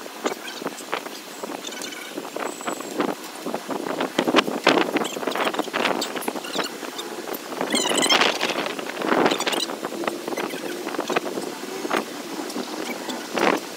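Men talk and call out loudly outdoors.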